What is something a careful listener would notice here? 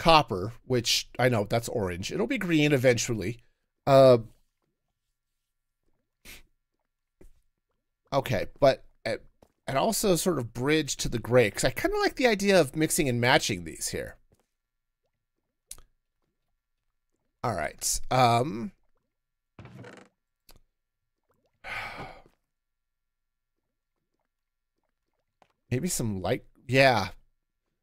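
A man talks casually into a close microphone, in bursts with pauses.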